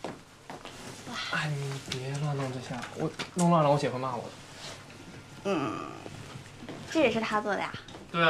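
A young man speaks with curiosity.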